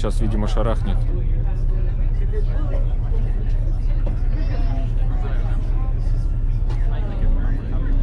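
People chat quietly in the background.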